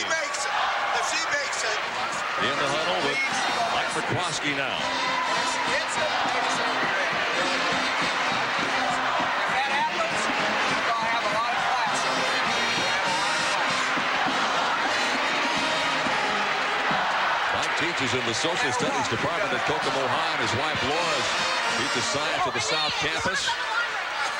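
A large crowd roars and cheers loudly in an echoing arena.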